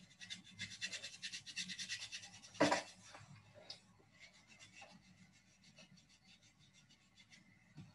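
A pad scrubs briskly against skin with a fast, rhythmic rasping.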